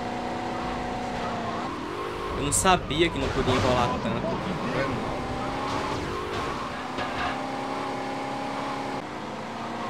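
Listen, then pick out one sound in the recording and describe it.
A car engine hums steadily and shifts pitch as it speeds up and slows down.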